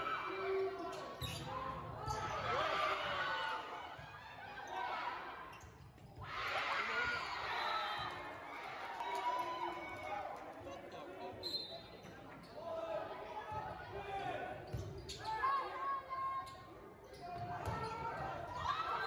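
Young players shout and call out to each other in a large echoing gym.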